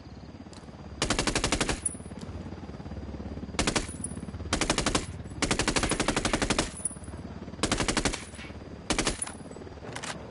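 Bursts of rapid gunfire ring out.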